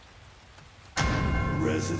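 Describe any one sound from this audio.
A drum kit is played with sticks.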